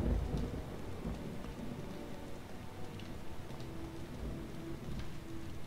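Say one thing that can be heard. Game music plays steadily in the background.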